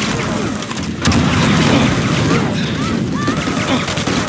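Game weapons fire rapidly.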